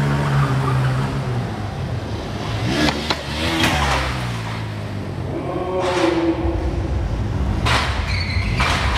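A single-cylinder stunt motorcycle revs hard.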